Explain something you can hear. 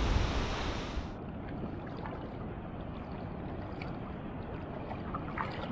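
Water laps gently close by at the surface.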